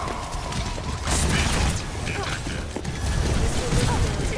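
A game weapon fires bursts of energy shots.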